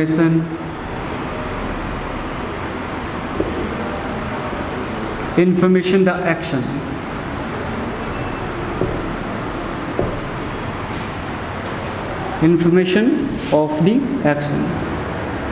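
A man speaks calmly and clearly nearby, in short bursts.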